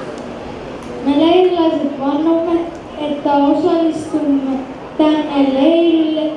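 A young boy speaks into a microphone over a loudspeaker.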